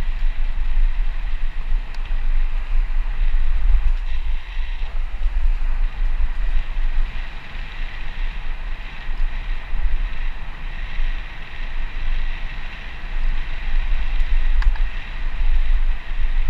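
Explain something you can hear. Wind rushes and buffets loudly past a fast-moving rider.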